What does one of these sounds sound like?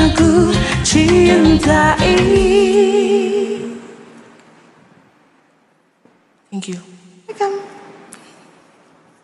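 A young woman sings through a headset microphone.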